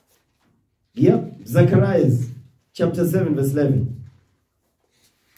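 A man speaks slowly and deeply, close into a microphone.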